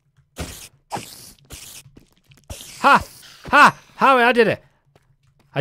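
A giant spider hisses and chitters.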